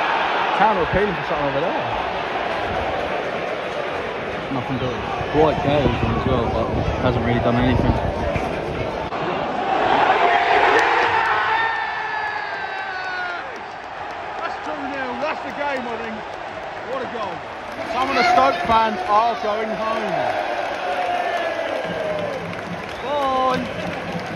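A large stadium crowd chants and sings loudly outdoors.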